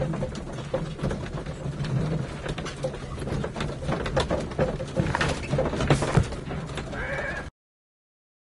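A horse-drawn carriage rumbles and rattles along.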